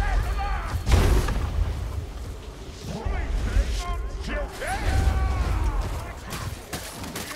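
Monstrous creatures growl and roar.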